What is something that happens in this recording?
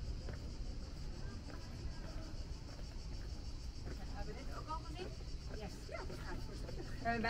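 Footsteps scuff on a cobbled path.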